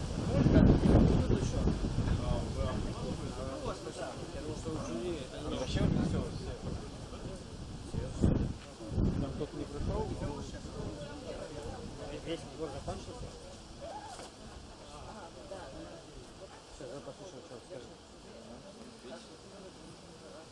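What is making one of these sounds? A man speaks calmly into a microphone, heard over a loudspeaker outdoors.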